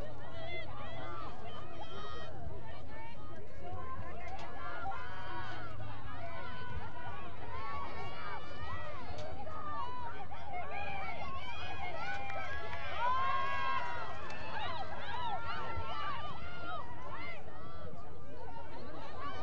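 Young women shout and call to each other outdoors.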